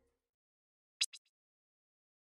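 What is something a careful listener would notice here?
A short electronic menu blip sounds twice in quick succession.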